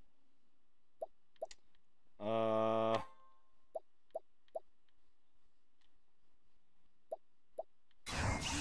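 Short electronic menu blips tick one after another.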